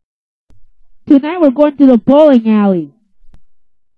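A young boy talks in a high, animated voice.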